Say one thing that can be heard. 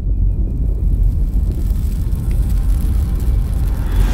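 A rocket engine roars with a deep, steady rumble that grows louder.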